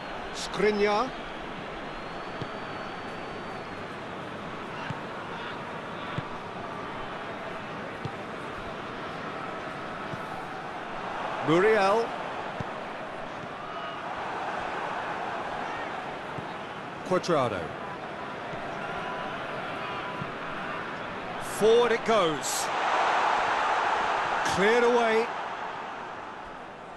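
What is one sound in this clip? A large stadium crowd murmurs steadily and swells loudly at times.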